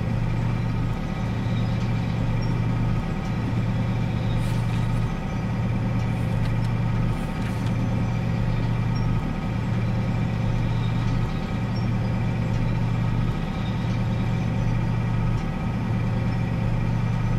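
A diesel locomotive engine drones steadily.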